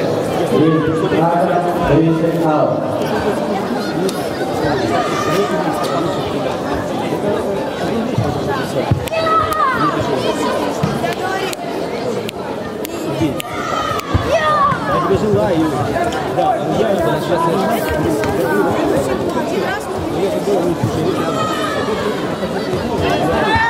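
A crowd of spectators chatters throughout in a large echoing hall.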